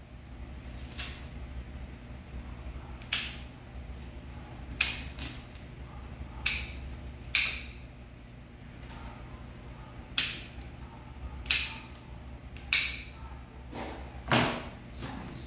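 Scissors snip sharply at intervals.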